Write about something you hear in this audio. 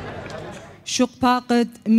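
A woman speaks into a microphone through a loudspeaker.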